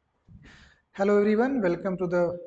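A man speaks close to a microphone, in a calm lecturing voice.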